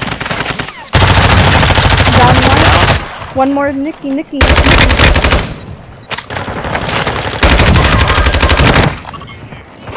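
Rapid gunfire from an assault rifle rattles loudly.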